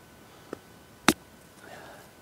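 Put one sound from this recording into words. A golf ball is tapped with a putter with a light click.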